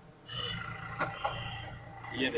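A car trunk latch clicks and the lid swings open.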